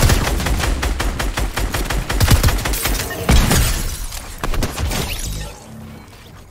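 Rapid gunfire and building sounds clatter in a video game.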